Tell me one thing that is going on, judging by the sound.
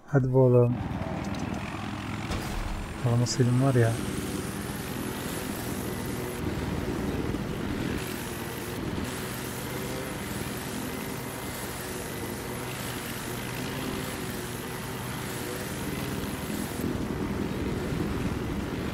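A helicopter's engine and rotor whir steadily.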